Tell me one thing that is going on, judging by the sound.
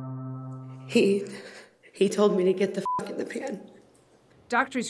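A woman speaks emotionally into a microphone.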